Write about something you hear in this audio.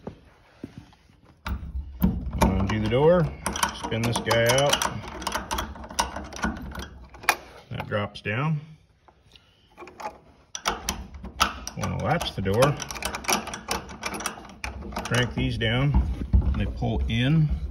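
A metal hook clicks and rattles against a metal eye.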